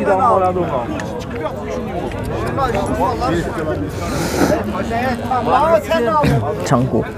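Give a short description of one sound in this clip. Several men talk at once close by, outdoors.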